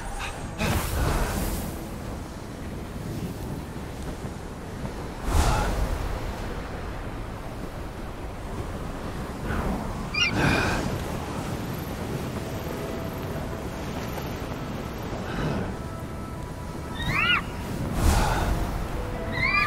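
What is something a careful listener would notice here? Wind rushes steadily past a gliding flyer.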